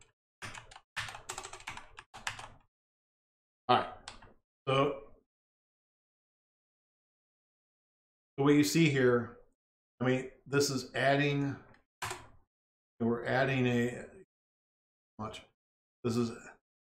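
An elderly man talks calmly and close to a microphone, with pauses.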